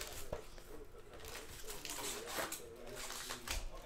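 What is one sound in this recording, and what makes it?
Foil card packs rustle as hands handle them.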